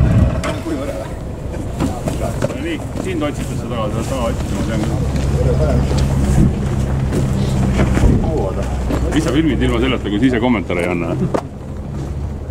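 Adult men talk casually nearby.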